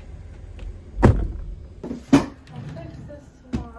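A drawer slides open with a thud.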